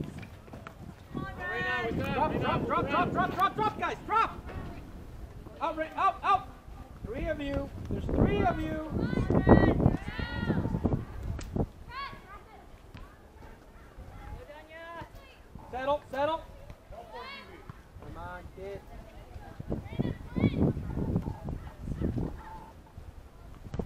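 Young girls shout and call out to each other across an open field.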